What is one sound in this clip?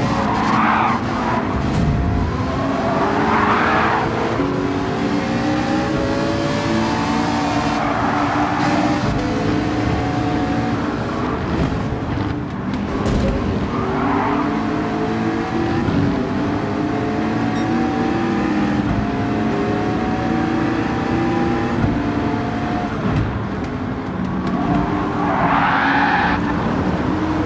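A race car engine roars, revving up through the gears and dropping on each shift.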